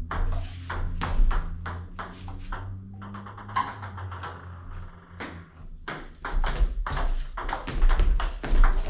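A paddle strikes a table tennis ball in a quick rhythm.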